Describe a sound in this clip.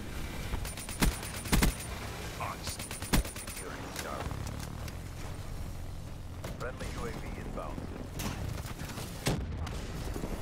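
Gunshots fire in short, loud bursts.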